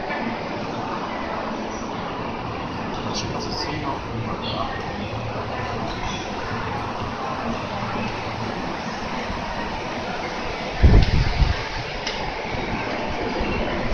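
Footsteps tap on a hard tiled floor.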